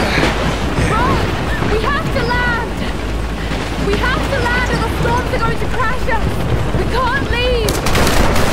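A young woman shouts urgently.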